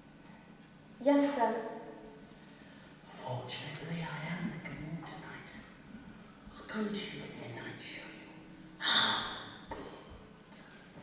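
A young woman speaks with feeling in a large echoing hall.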